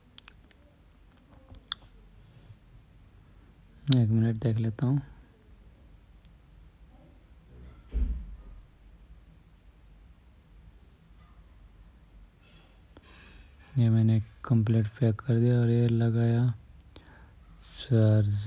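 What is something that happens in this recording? A small phone case clicks and knocks faintly as hands turn it over.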